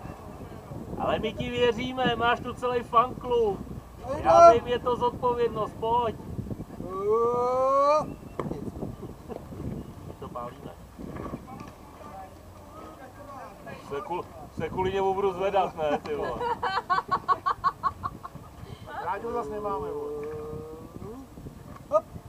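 Young men shout and call out across an open field outdoors.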